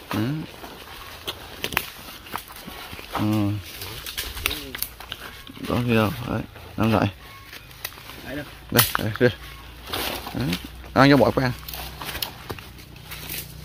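Large leaves rustle as they are laid on dry ground.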